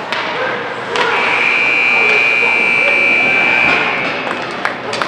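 A scoreboard horn blares to end a period.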